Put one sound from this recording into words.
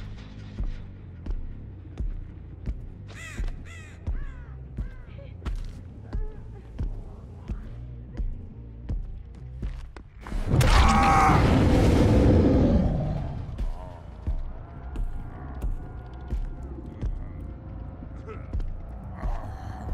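Heavy footsteps thud at an even walking pace.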